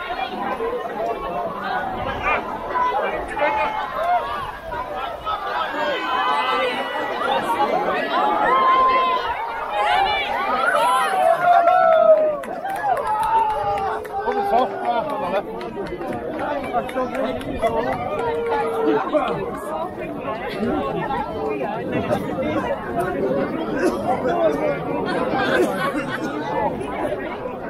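A large crowd of men and women chatters and shouts excitedly outdoors.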